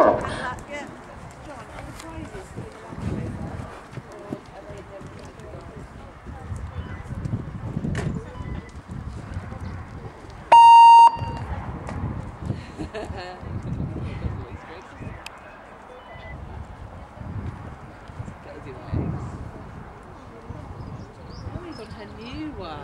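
A horse canters with soft, muffled hoofbeats on sand.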